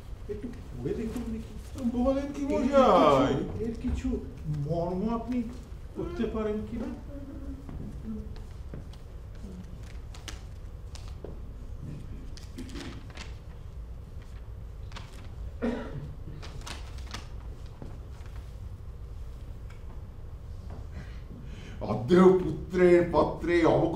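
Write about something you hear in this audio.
An elderly man speaks with expression, heard through a microphone in a hall.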